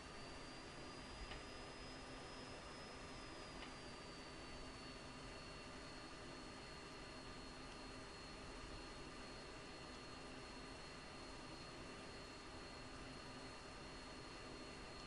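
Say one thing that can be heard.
A jet engine whines steadily as a fighter jet taxis.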